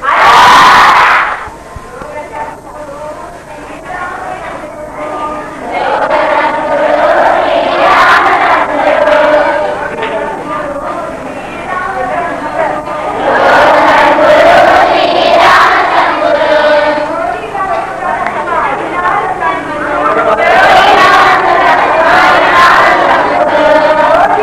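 A crowd of people sings together in a large echoing room.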